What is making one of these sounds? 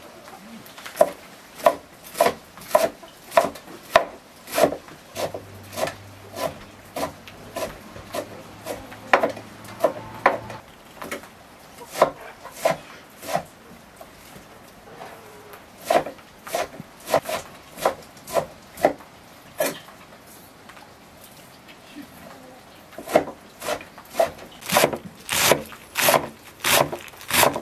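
A knife chops fresh herbs on a wooden board with quick, sharp knocks.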